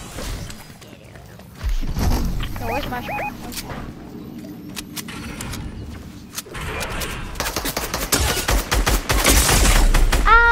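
Quick footsteps patter over grass and dirt.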